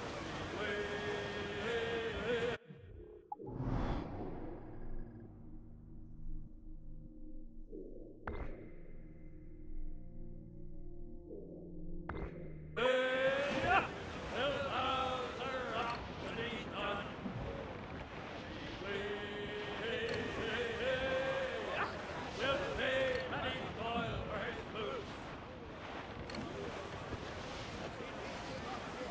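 Waves wash and splash against a sailing ship's hull.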